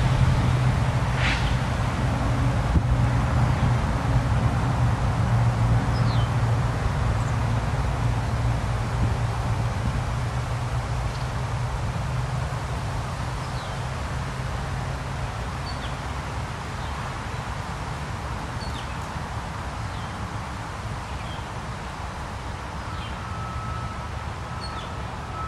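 Wind rustles the leaves of trees outdoors.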